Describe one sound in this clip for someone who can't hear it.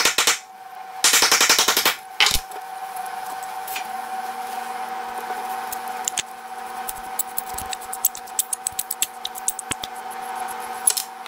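Metal parts of a hand tool click and clink as they are handled.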